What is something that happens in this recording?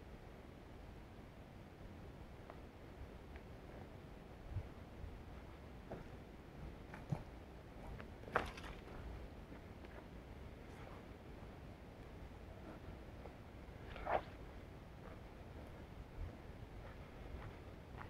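Footsteps crunch and twigs snap on a forest floor.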